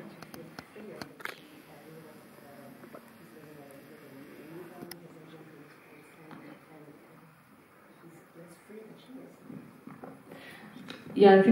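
A woman speaks faintly from a distance, off the microphone.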